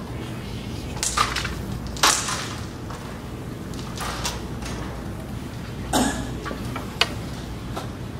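A striker knocks against game pieces on a board with short sharp clicks.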